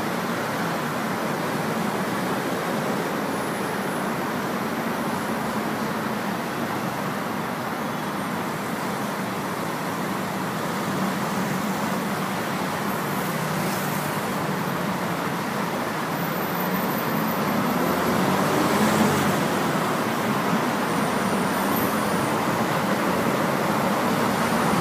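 Traffic rumbles steadily along a busy road.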